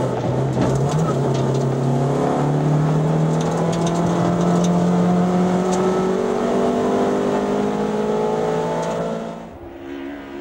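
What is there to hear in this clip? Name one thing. A race car engine roars loudly from inside the car, rising in pitch as it speeds up.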